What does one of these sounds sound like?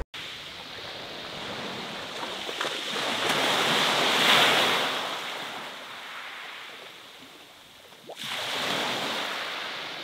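Waves wash in and break on a pebble shore.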